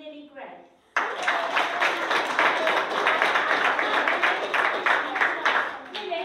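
A large group of children cheers and claps loudly.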